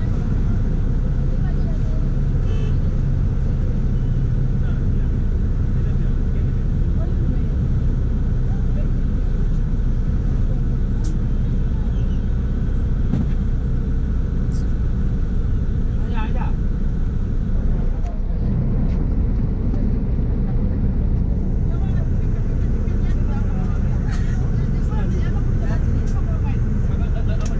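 A vehicle engine rumbles steadily up close.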